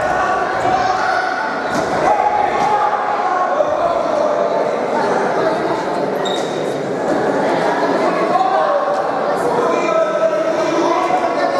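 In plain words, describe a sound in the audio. A crowd of spectators talks and cheers, echoing in a large hall.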